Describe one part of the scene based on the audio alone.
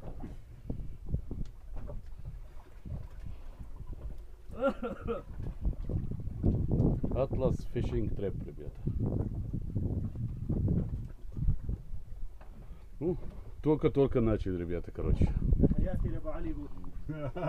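Wind blows outdoors on open water.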